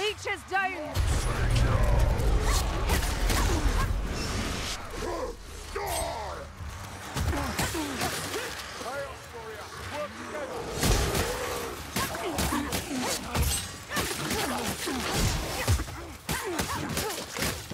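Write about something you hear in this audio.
Creatures snarl and screech as they attack.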